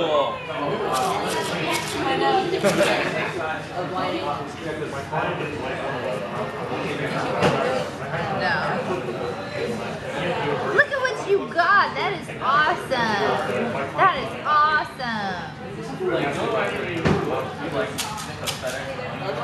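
A young man talks playfully up close.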